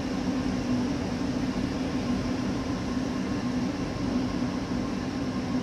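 Train wheels rumble on the rails.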